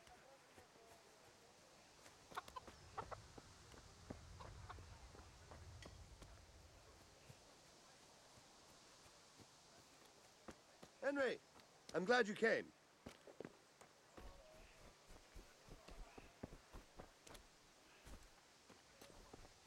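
Footsteps crunch on dirt at a steady walking pace.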